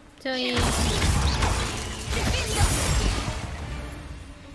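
A magic spell crackles and bursts loudly.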